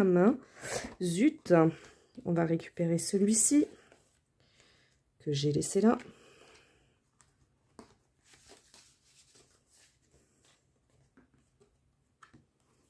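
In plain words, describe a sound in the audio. Stiff paper pages rustle and flap as they are folded open.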